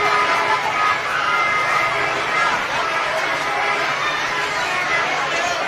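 A crowd of children and adults chatters all around.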